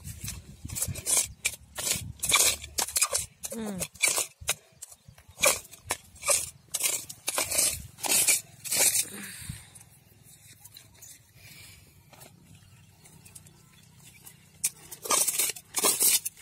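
Hands scrape and press loose, gritty soil close by.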